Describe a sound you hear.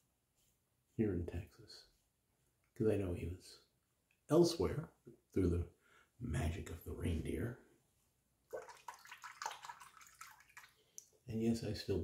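A middle-aged man talks close by with animation.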